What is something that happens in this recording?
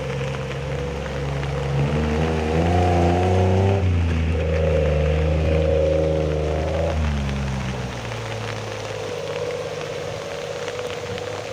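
Floodwater rushes and churns steadily.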